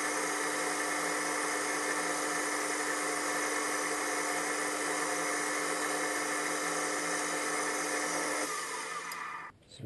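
A lathe tool scrapes as it cuts metal.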